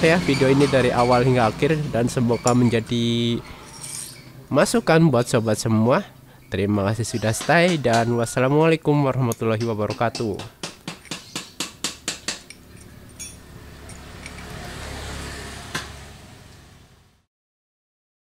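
Metal parts clink and scrape together as they are handled.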